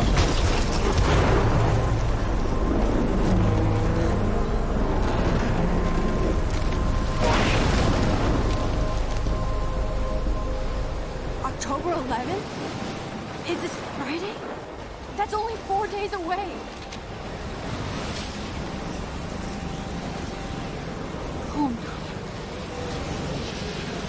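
Strong wind roars and howls through a storm.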